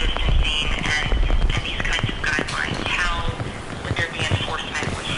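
An elderly man speaks calmly into a microphone, heard in an echoing hall.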